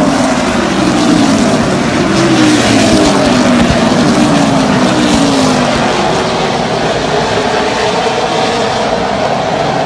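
Race car engines roar loudly as cars speed past.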